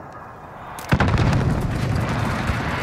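A rifle fires a single shot.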